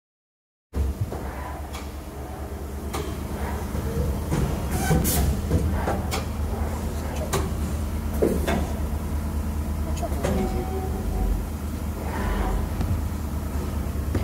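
Mechanical parts inside a machine click and clatter.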